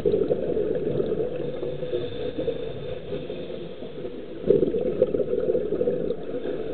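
Water rumbles and swirls in a dull, muffled wash underwater.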